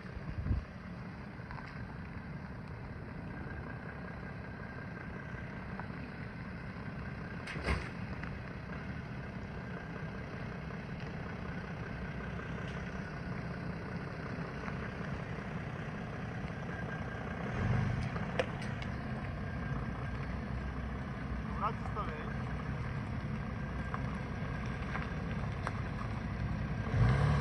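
A car engine idles and rumbles as the car rolls slowly closer.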